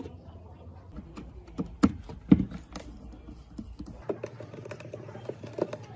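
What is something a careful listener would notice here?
A screwdriver scrapes and taps on plastic.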